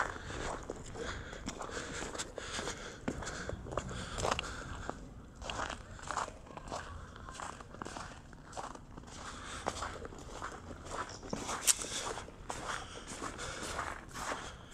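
Footsteps crunch steadily on snowy pavement.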